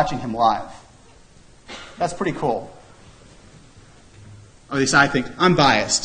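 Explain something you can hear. A man lectures through a microphone in a large room, speaking in short bursts with pauses.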